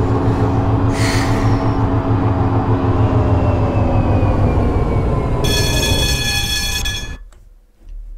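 An electric tram's motor whines as the tram rolls along rails and the whine winds down.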